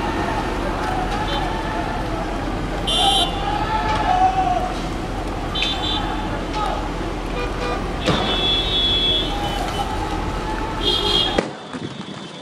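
A car engine hums steadily nearby.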